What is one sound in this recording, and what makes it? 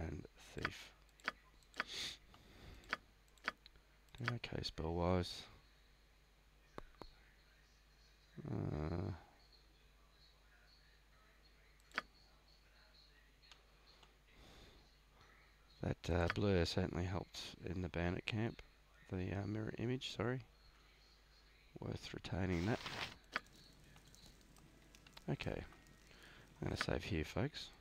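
Menu buttons click sharply now and then.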